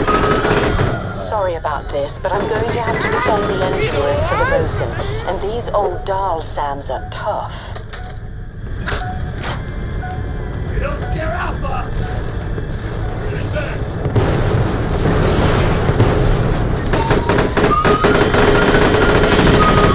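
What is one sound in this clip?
Video game gunfire rattles in bursts.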